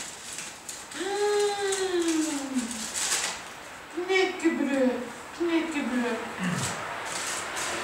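A small dog whines and yelps.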